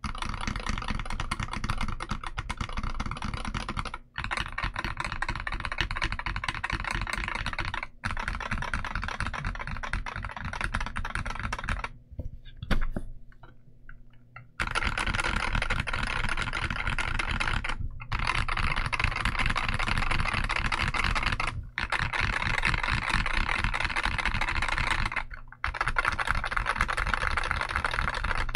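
Keys on a mechanical keyboard clack rapidly and steadily as someone types.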